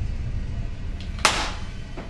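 Metal cartridges clink onto a wooden table.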